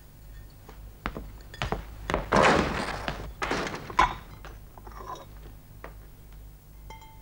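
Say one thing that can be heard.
Dishes clink and clatter in a sink.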